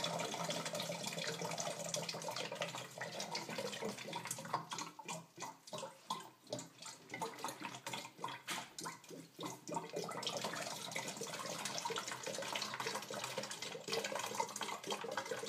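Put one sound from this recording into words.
Liquid sloshes inside a plastic bottle.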